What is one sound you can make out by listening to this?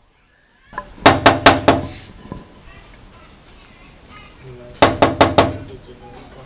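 A young man knocks on a door.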